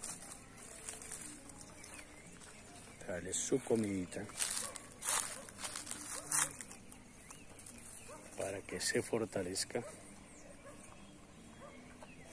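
A cow munches and rustles dry leaves.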